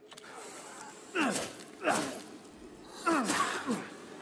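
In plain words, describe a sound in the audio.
A knife stabs into flesh with wet thuds.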